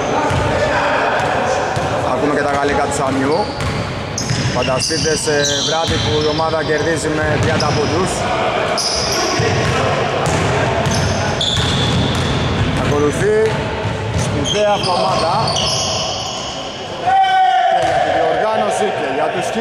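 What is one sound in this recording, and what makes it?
Men shout and call out across an echoing hall.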